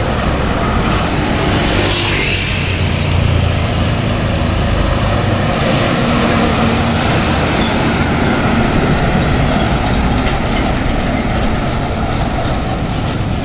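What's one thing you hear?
Heavy truck engines rumble steadily close by.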